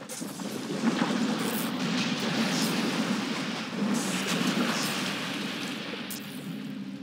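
Steam hisses loudly from a vent.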